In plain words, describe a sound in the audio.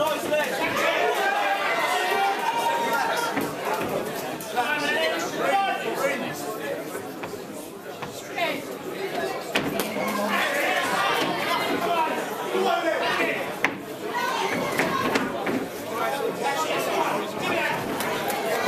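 A crowd of men and women chatters and shouts loudly in a large echoing hall.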